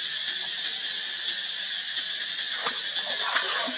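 A monkey splashes softly in shallow water.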